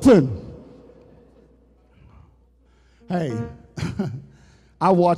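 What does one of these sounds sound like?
A man preaches emphatically through a microphone in a large echoing hall.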